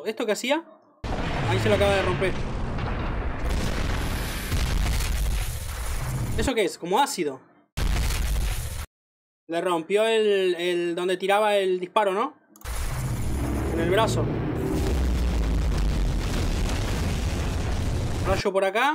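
Explosions boom and rumble heavily.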